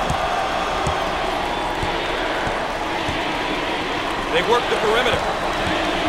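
A basketball bounces steadily on a hardwood floor.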